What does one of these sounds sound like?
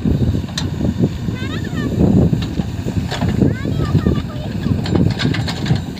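An excavator bucket scrapes and drags through dry soil.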